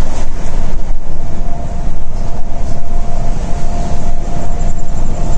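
Tyres roar on an asphalt highway, heard from inside a coach.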